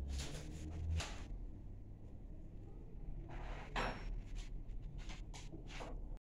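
Metal cups clink softly against one another.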